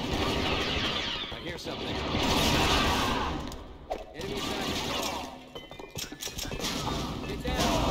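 Laser rifles fire in quick bursts.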